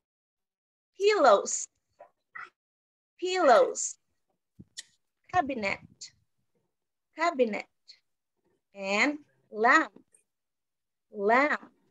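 A young woman speaks clearly over an online call, with pauses between short phrases.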